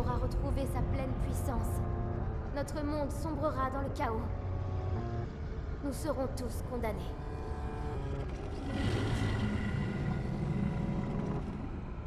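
A deep, low rumble roars and swells.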